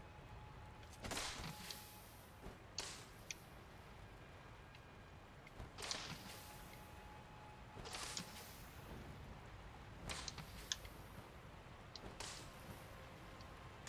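Footsteps crunch on leaves and dirt.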